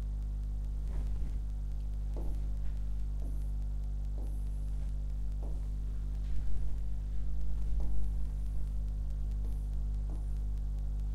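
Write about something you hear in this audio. A marker squeaks on a board.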